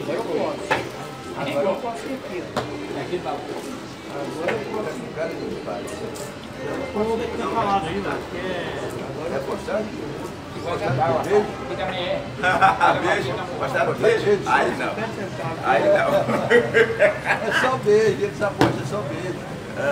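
Elderly men talk with animation close by.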